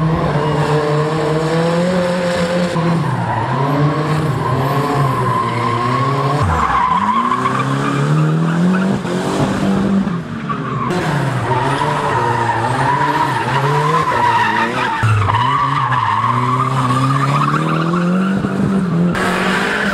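Tyres squeal on asphalt.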